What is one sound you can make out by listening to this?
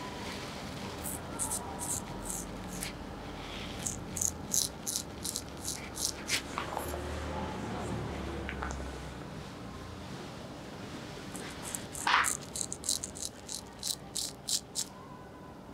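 Hands pat and slap a cheek in quick bursts.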